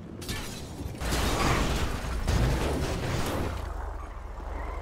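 A blast bursts out with a loud, rushing roar.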